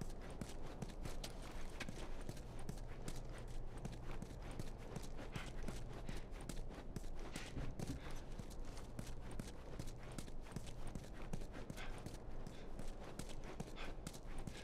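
Footsteps tread steadily on a hard floor indoors.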